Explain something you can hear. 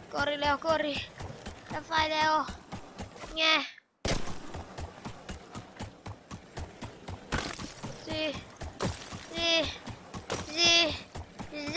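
A young boy talks excitedly into a nearby microphone.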